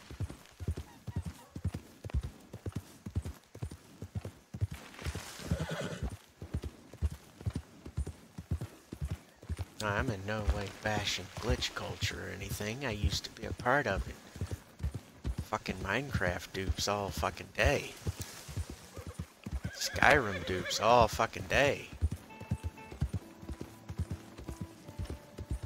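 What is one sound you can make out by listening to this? A horse's hooves thud steadily at a gallop over soft ground.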